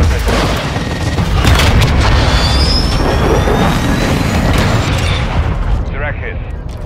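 A huge explosion rumbles and roars.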